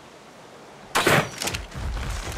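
A crossbow fires with a sharp snap.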